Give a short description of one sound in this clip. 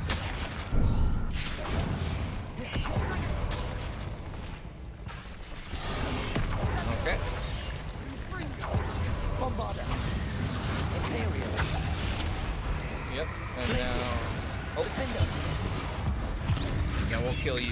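Magic spells blast and crackle in quick bursts.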